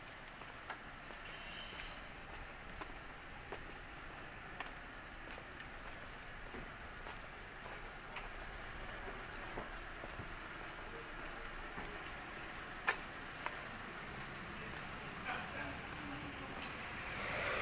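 Footsteps tap on paving stones at a walking pace.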